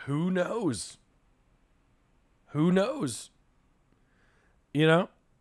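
A young man speaks with animation in short bursts, close to a microphone.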